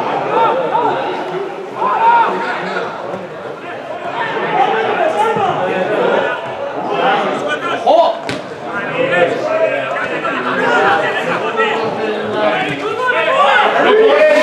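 Footballers shout to each other across an open field in the distance.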